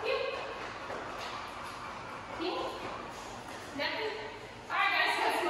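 A woman speaks to a dog in short, upbeat bursts nearby.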